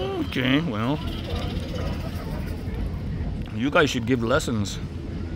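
A squirrel nibbles food close by.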